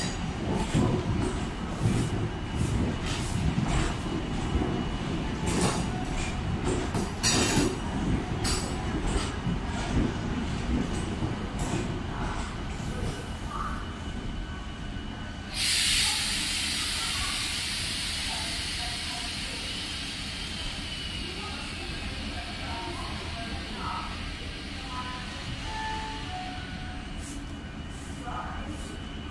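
A train rolls past close by with a low rumble, slowing down.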